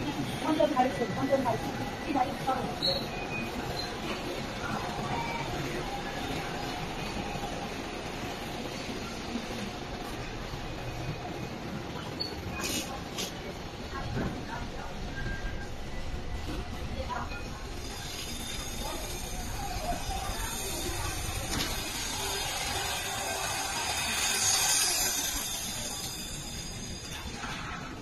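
Machines hum steadily in a large room.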